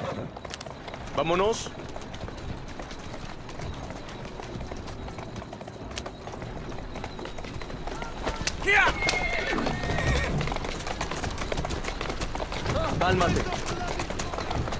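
Carriage wheels rumble over a rough street.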